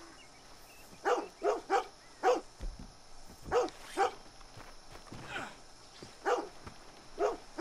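A dog barks repeatedly close by.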